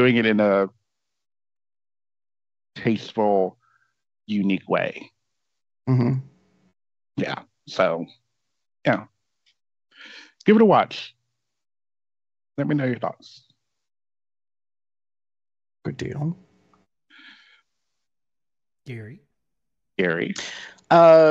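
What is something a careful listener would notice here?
Men talk in turns over an online call, with pauses between their words.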